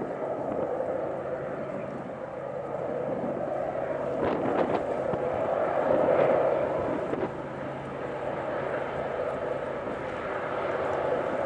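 Diesel locomotives rumble and drone steadily as a long freight train approaches.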